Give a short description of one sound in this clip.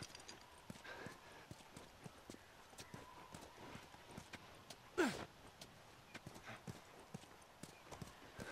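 Footsteps fall on pavement.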